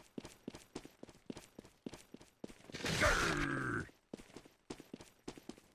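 Quick footsteps patter in a steady rhythm.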